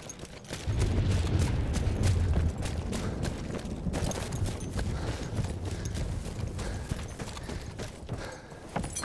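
Footsteps tread steadily over grass and dirt.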